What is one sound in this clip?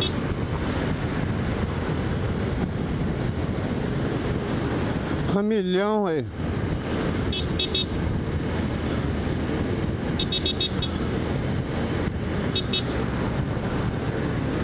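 Wind roars steadily past a fast-moving motorcycle.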